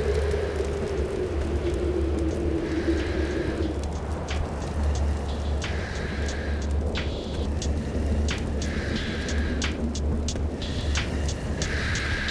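Claws tap and scrape on hard ground as a creature creeps about.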